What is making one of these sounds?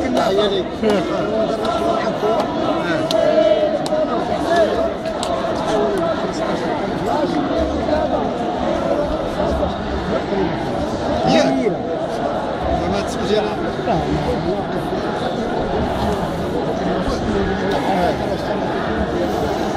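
A crowd of men talks and murmurs all around, close by, outdoors.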